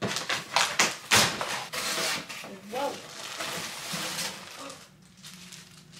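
Cardboard and plastic packaging rustle and crinkle as a box is unpacked.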